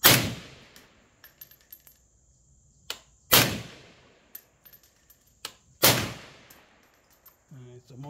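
A suppressed rifle fires three sharp shots outdoors, each trailing off in a short echo.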